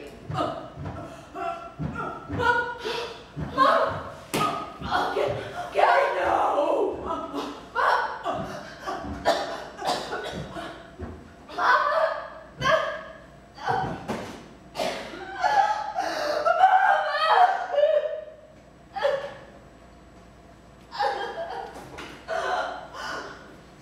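A woman cries out and speaks dramatically in a hall.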